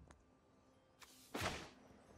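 A card game plays a short whooshing sound effect as a card is played.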